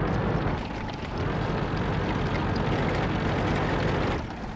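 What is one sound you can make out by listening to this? A tank engine roars louder as the tank drives off.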